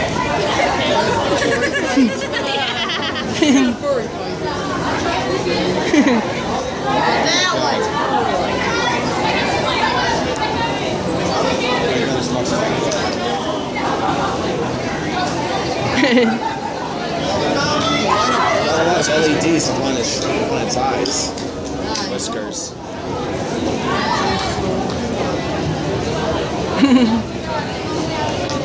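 A crowd chatters all around in a busy indoor hall.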